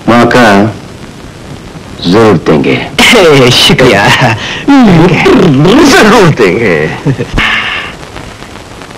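A man speaks loudly and with animation, close by.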